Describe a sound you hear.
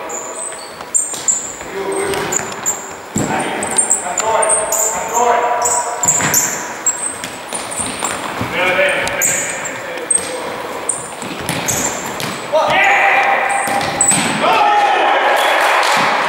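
A futsal ball thuds off a player's foot.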